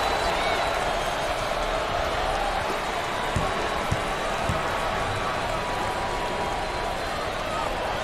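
A large crowd murmurs and cheers steadily in a big echoing arena.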